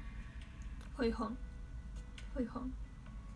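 A young girl speaks softly close to the microphone.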